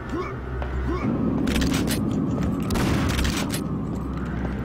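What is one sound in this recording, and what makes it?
A gun fires with a loud, booming blast.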